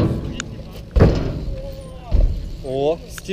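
A bike lands with heavy thuds.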